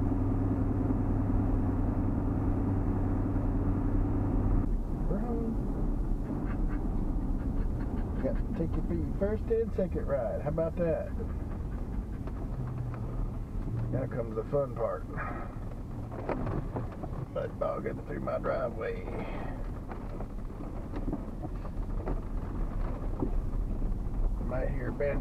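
A car drives along a road, heard from inside.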